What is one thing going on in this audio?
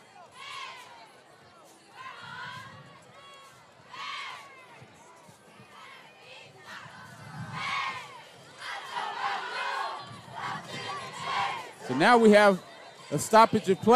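A crowd shouts and cheers in the distance outdoors.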